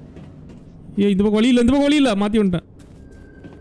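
A young man exclaims loudly, close to a microphone.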